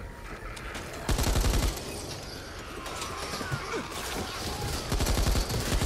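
Zombies groan and snarl.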